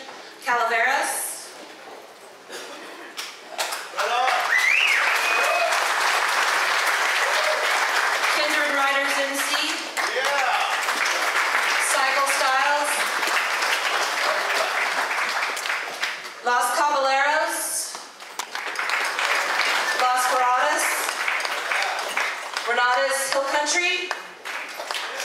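A woman speaks into a microphone over a loudspeaker in an echoing room.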